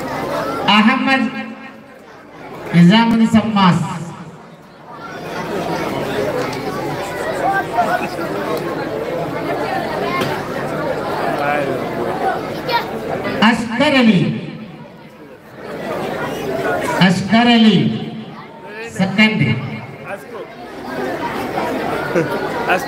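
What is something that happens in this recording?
A man chants loudly into a microphone over loudspeakers, echoing outdoors.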